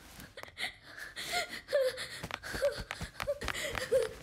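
Footsteps run quickly away.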